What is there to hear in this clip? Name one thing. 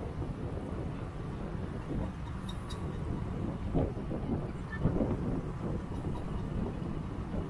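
A motorcycle engine hums steadily nearby.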